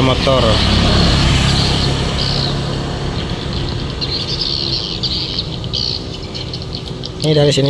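A boat's outboard motor drones steadily and slowly fades into the distance.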